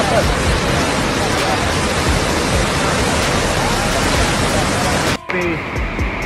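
Muddy floodwater rushes and roars.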